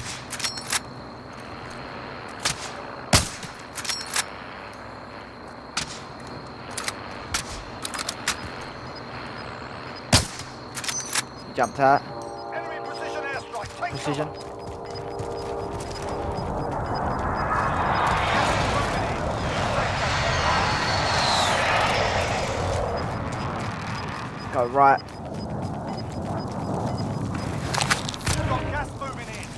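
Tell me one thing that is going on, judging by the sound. A rifle fires sharp, loud shots.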